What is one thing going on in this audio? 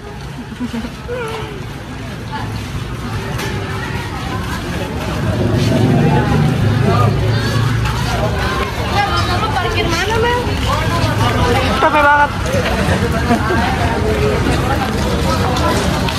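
A crowd of people chatter and shout outdoors, growing louder.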